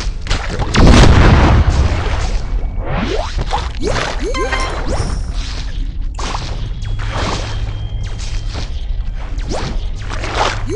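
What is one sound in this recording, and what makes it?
A cartoon shark crunches and chomps its prey.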